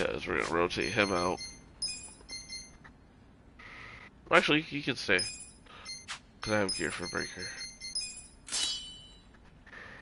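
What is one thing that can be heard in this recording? Short electronic menu clicks and chimes sound as options change.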